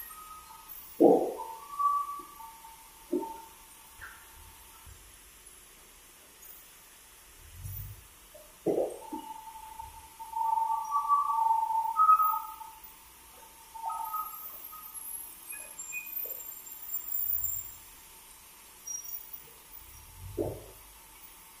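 Wooden planks knock and thud heavily.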